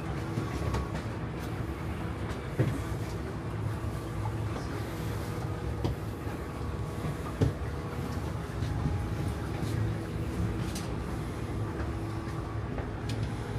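Machinery hums low and steady in the background.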